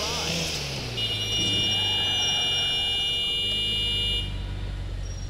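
A car horn blares steadily for a few seconds.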